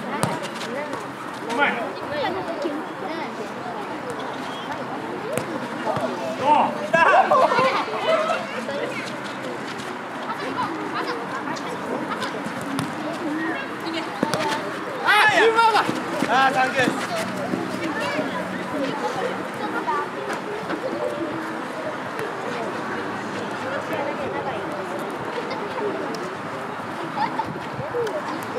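Children shout and call out while playing outdoors.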